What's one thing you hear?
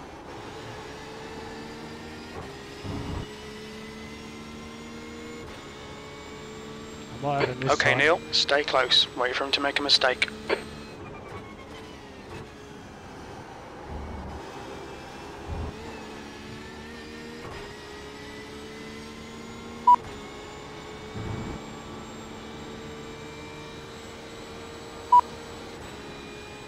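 A race car engine roars steadily, rising in pitch and dropping back with each gear change.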